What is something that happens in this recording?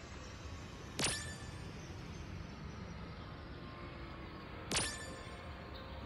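A short chime rings each time a bonus is awarded.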